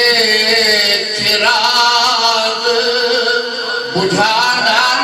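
An elderly man recites through a microphone.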